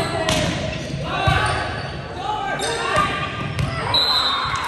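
A volleyball is struck with a hard slap in a large echoing gym.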